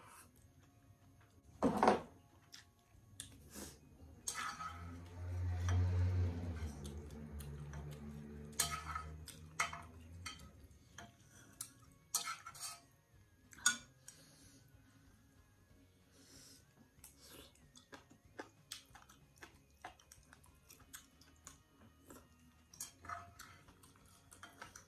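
Chopsticks click against a ceramic bowl.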